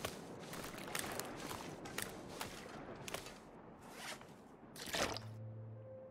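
Footsteps crunch over snow and ice.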